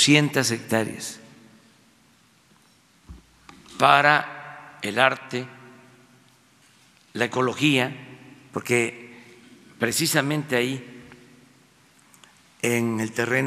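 An elderly man speaks calmly into a microphone, pausing between phrases, in a reverberant hall.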